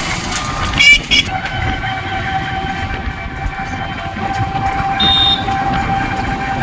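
Tyres rumble over the road.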